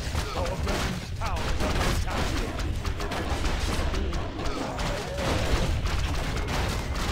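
Swords clash and clang rapidly in a busy battle.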